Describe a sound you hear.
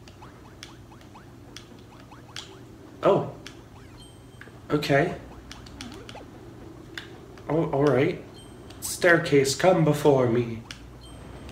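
Cartoonish sound effects pop and chime.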